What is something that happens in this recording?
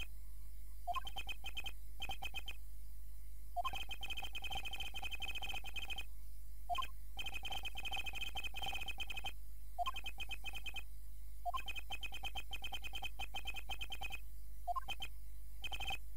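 Rapid high electronic blips chatter in quick bursts, like game text ticking out letter by letter.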